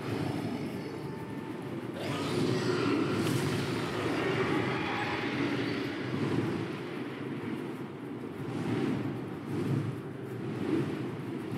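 Wind roars and rushes steadily.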